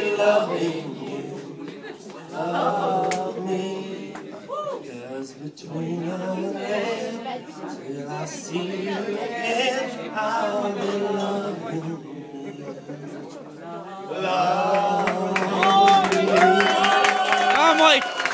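An acoustic guitar strums along.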